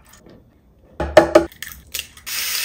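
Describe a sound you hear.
An egg cracks.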